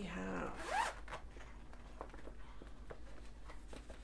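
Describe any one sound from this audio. A zipper is pulled open.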